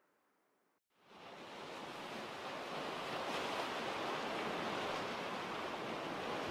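Waves break and wash in steadily close by.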